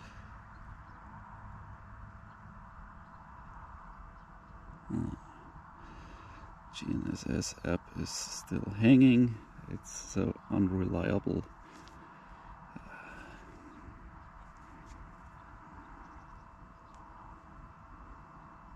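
Wind blows softly across an open field.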